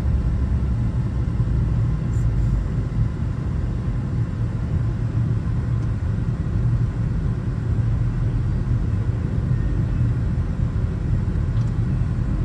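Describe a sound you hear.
A freight train rumbles and clatters over a grade crossing.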